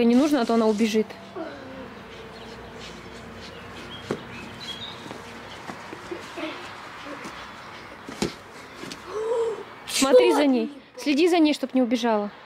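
A young boy talks loudly and excitedly nearby.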